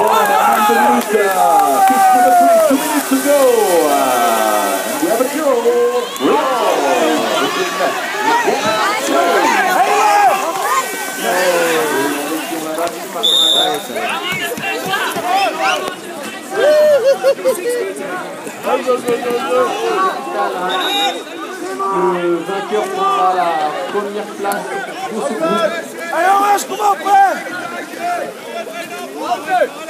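A crowd of men and women shout and cheer outdoors.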